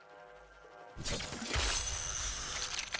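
A spear splashes into water.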